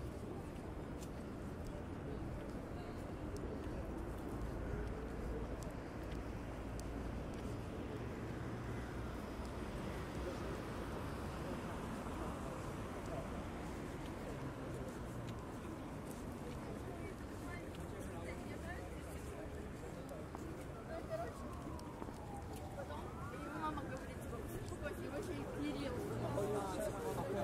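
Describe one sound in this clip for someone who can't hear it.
Traffic rumbles steadily nearby outdoors.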